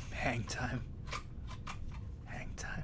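A young man laughs softly into a close microphone.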